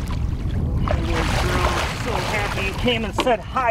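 A fish splashes hard in the water.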